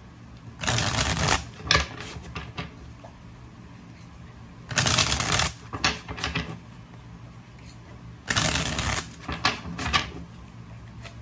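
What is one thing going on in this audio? A deck of cards is riffle shuffled, rustling in quick bursts.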